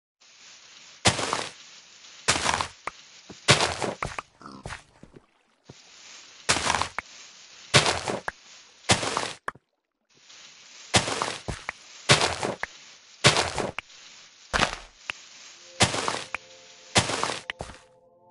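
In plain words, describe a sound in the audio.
Dirt blocks break apart with short crunching thuds, again and again.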